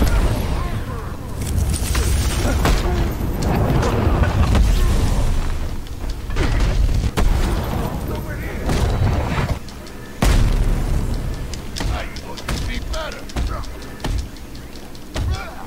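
Punches and kicks land with heavy thuds again and again.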